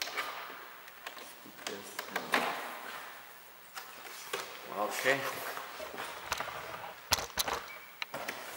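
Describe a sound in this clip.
A plastic door panel clicks and rattles as it is pulled loose.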